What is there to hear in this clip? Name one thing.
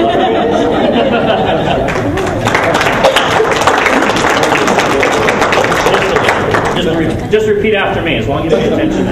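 A crowd of men and women chatters and laughs in a large room.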